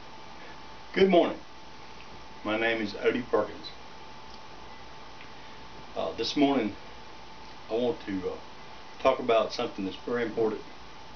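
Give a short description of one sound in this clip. An elderly man speaks calmly close by, in short bursts.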